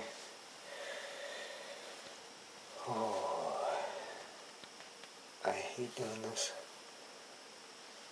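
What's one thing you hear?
A paper towel rustles softly under fingers.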